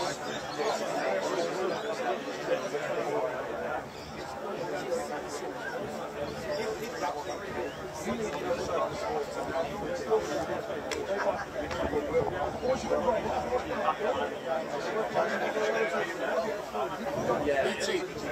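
Several people chatter in the background outdoors.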